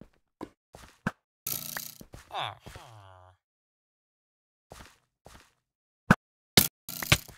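Lava pops and crackles in short bursts.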